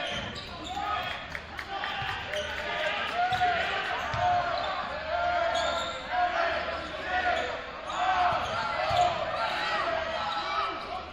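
A basketball thumps as it is dribbled on the court.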